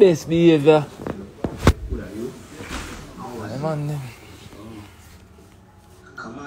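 A young man talks casually close to a phone microphone.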